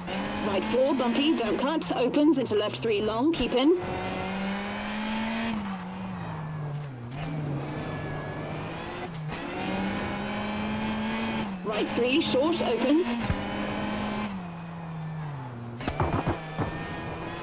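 A rally car engine drones steadily, rising and falling in pitch as it speeds up and slows.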